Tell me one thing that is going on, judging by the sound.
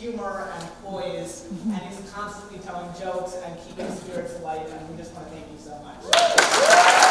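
A teenage boy speaks through a microphone in a large hall.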